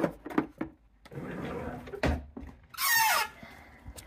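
A wooden cabinet door swings open.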